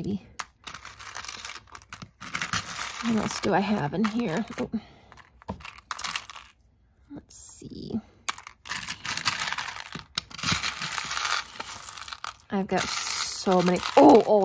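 Plastic buttons clatter and rattle as hands rummage through them.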